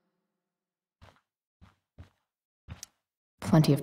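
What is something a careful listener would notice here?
Footsteps tap softly on a floor.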